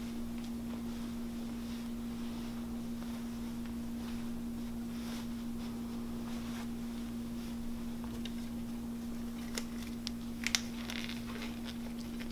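A thin plastic gown rustles and crinkles.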